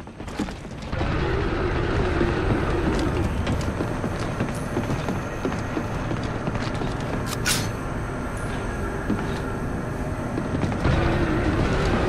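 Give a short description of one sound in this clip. Heavy armoured footsteps clank on a metal floor.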